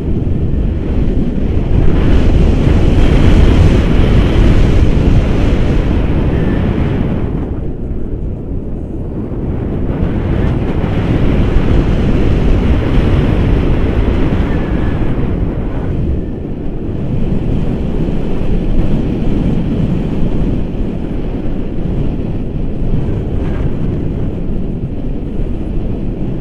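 Strong wind roars loudly and gusts against the microphone.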